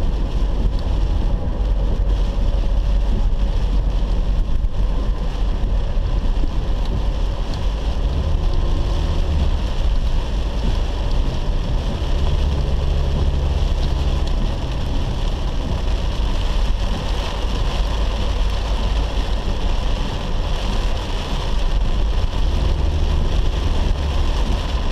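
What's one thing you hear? Heavy rain drums on a car's windscreen.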